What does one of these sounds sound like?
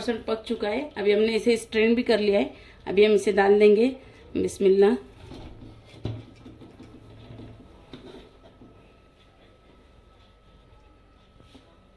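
Cooked rice is tipped from a metal strainer into a pot with a soft rustle.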